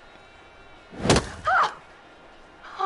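A young woman gasps sharply in fright.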